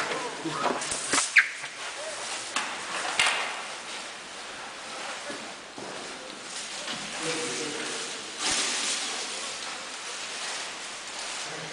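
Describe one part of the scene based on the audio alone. Dry leafy branches rustle and scrape along a hard floor.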